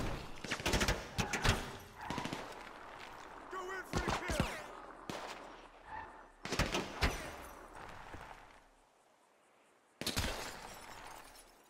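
A car engine roars as a sports car drives off.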